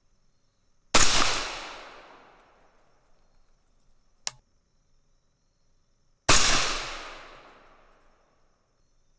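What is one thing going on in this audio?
A rifle fires two loud shots that echo outdoors.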